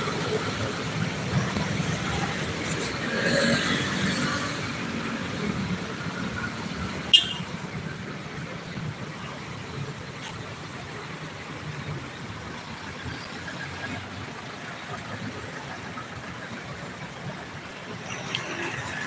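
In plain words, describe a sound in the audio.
Busy city traffic hums and rumbles steadily outdoors.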